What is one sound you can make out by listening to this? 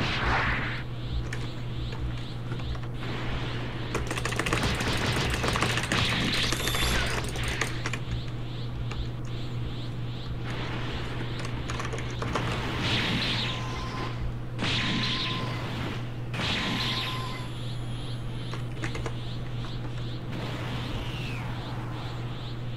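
A game's energy aura roars and crackles.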